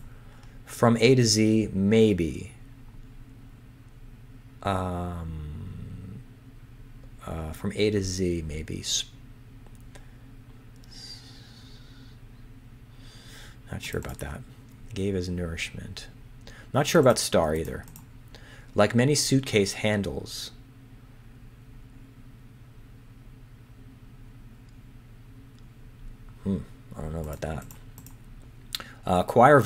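A man talks calmly and thoughtfully into a close microphone, with pauses.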